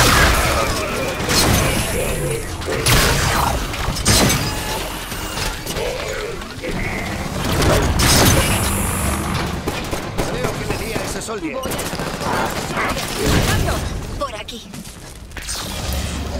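Gunfire and energy blasts burst in rapid bursts.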